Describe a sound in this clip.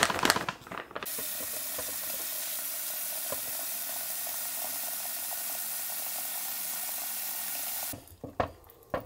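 Water runs from a tap into a plastic bucket with a steady splashing rush.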